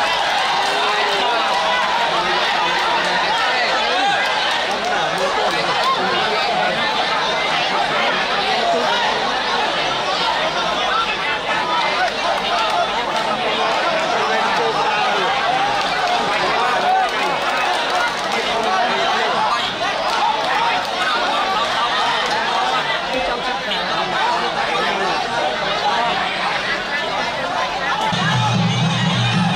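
A large crowd murmurs and shouts throughout in an echoing arena.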